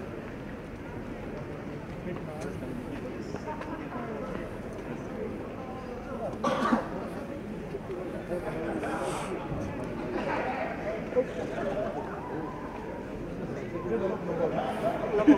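A crowd murmurs and chatters in a large open stadium.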